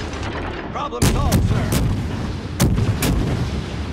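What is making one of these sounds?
Heavy naval guns fire with loud booms.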